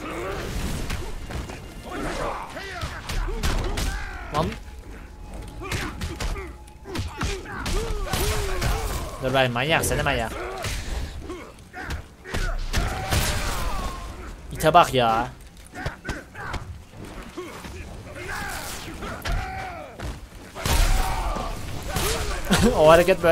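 Punches and kicks thud and smack in a video game fight.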